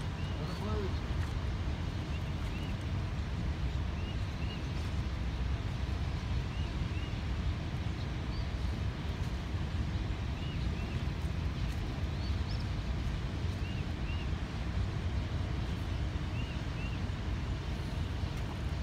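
Water laps gently against a rocky shore.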